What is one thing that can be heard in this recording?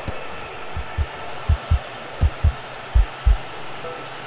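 A ball is kicked with dull thumps several times.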